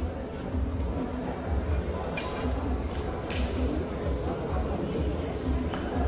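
A marching band's horns play a tune.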